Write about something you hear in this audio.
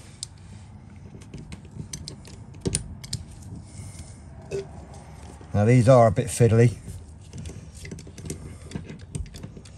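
A hand crimping tool clicks as its jaws squeeze shut.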